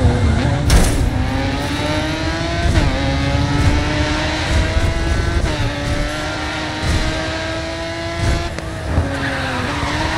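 Tyres screech as a racing car corners hard.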